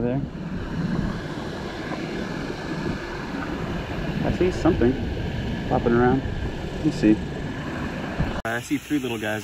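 Water splashes and sloshes as a net is lifted and handled.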